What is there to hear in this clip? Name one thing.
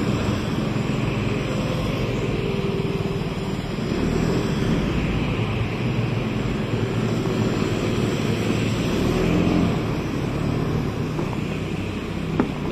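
A scooter engine hums steadily close by.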